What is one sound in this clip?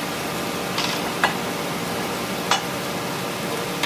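Metal parts clank as a man handles them.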